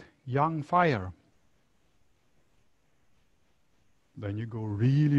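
A middle-aged man speaks calmly and clearly into a nearby microphone, pausing between phrases.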